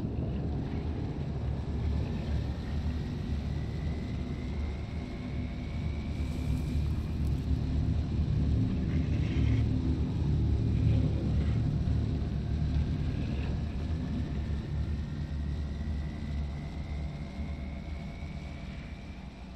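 A high engine whine slowly rises in pitch.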